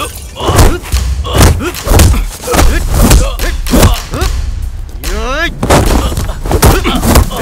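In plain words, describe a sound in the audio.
A man grunts and groans as he fights.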